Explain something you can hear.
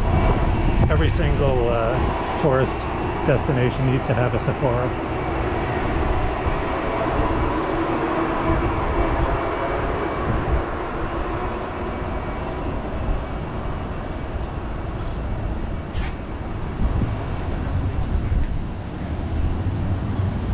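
City traffic rumbles steadily in the distance, outdoors.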